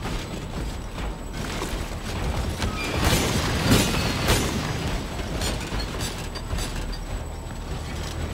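Hurried footsteps run across a hard floor.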